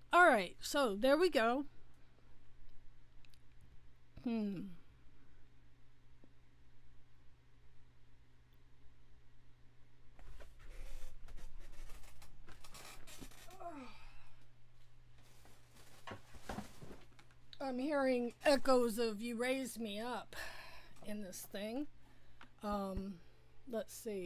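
A woman talks with animation close to a microphone.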